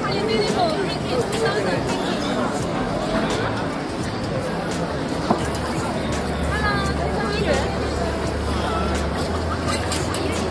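Men and women chatter nearby on a busy street.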